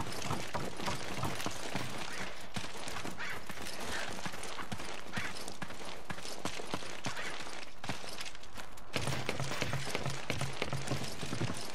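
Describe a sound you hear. Footsteps thud steadily on dirt and wooden boards.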